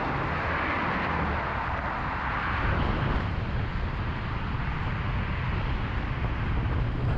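Traffic roars steadily past on a busy highway.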